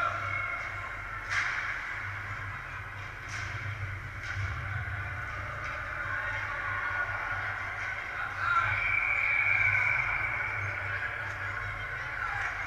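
Ice skates scrape and hiss across the ice in a large echoing rink.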